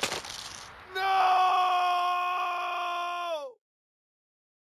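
A short game jingle sounds and slides down in pitch.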